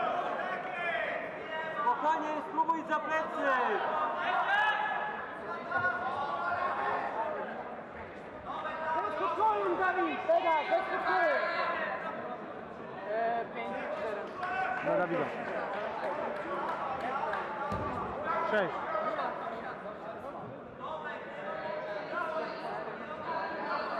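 Several men shout instructions loudly in an echoing hall.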